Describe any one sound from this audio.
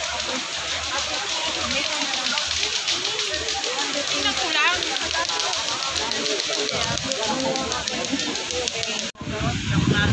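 Several women talk and chatter close by.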